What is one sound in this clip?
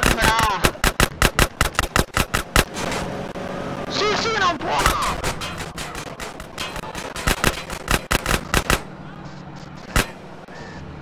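Rapid gunshots crack again and again close by.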